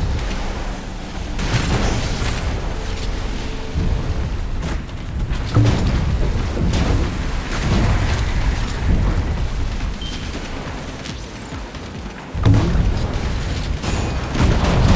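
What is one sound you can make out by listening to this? Water splashes and sprays behind a speedboat.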